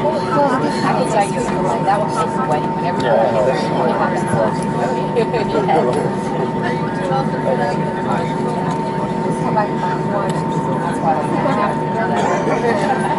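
A jet airliner's engines hum steadily as the plane taxis.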